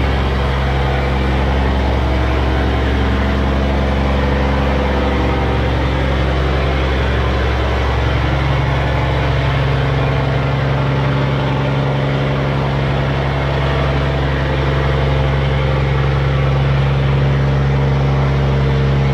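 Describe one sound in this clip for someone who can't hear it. A barge's diesel engine runs under load.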